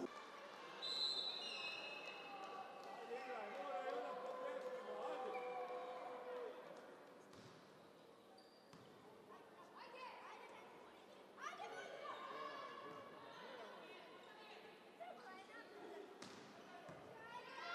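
A crowd cheers and chants in a large echoing hall.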